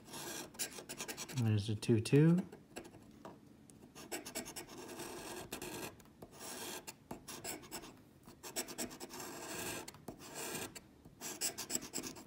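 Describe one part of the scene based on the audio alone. A coin scratches and scrapes rapidly across a card.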